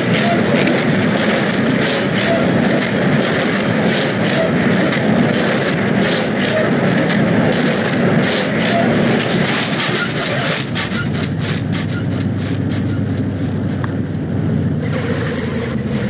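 A heavy truck engine rumbles and strains steadily.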